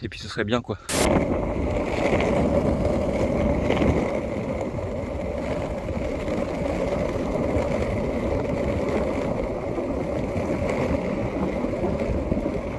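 Wind rushes steadily across the microphone outdoors.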